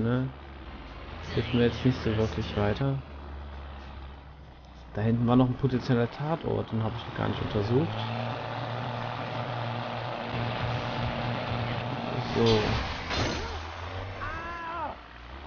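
A pickup truck's engine rumbles steadily as it drives.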